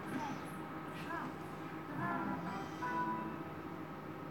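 A gaming machine plays short electronic chimes.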